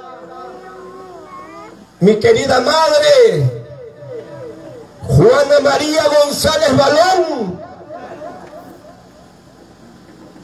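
A man speaks through a microphone and loudspeakers, shouting with animation in loud bursts.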